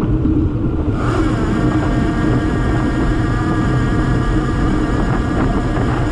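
A motorcycle engine hums as it passes close by.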